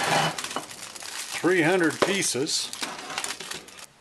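A plastic box snaps open.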